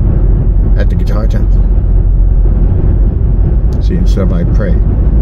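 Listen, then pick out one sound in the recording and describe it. A car engine and road noise rumble steadily from inside the car.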